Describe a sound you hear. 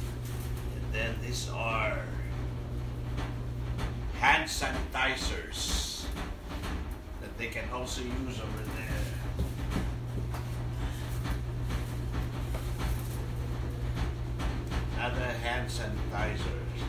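A man speaks calmly nearby in short bursts.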